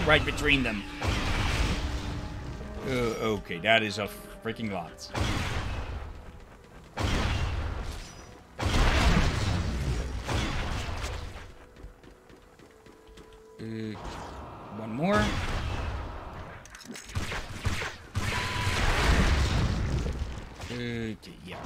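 Gunfire bursts out in rapid volleys.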